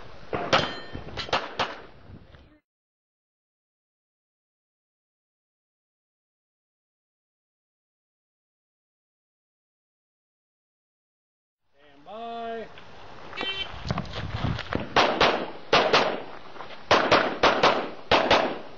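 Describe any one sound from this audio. Pistol shots ring out in quick bursts outdoors.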